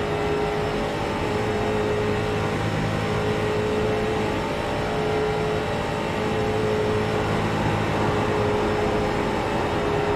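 A racing car engine drones loudly and steadily at high speed.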